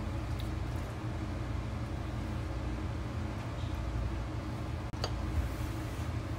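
A wooden spoon scrapes softly against a bowl and spreads filling.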